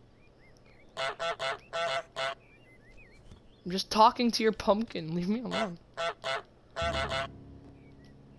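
A goose honks loudly, again and again.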